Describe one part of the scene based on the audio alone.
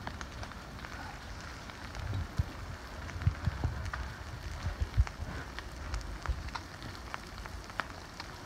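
Burning vegetation crackles and pops.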